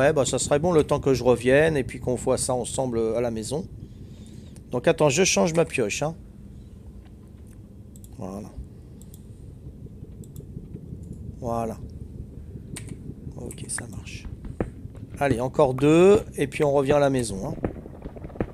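A man talks calmly and closely into a headset microphone.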